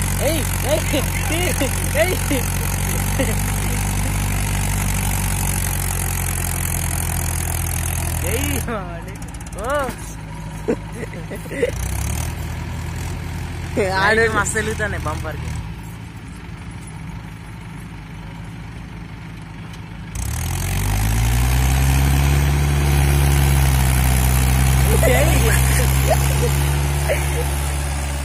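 A tractor engine rumbles close by.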